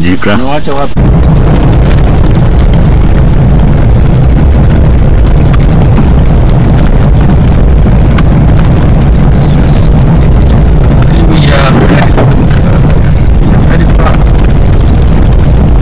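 A vehicle's engine rumbles steadily as it drives along.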